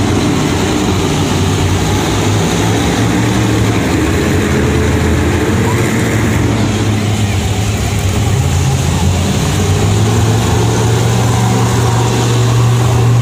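A monster truck engine rumbles and roars loudly in a large echoing arena.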